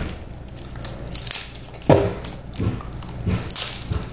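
A boy crunches and chews food.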